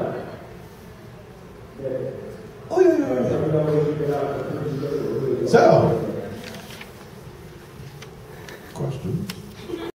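A man speaks with animation into a microphone through a loudspeaker in a large room.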